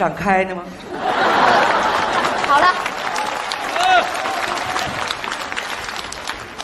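An audience laughs loudly in a large hall.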